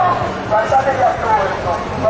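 A young man speaks loudly through a megaphone.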